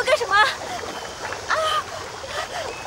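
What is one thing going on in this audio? A young woman cries out in distress close by.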